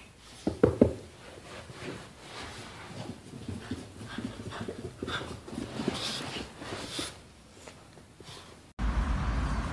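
A small dog's paws patter and thump softly up carpeted stairs.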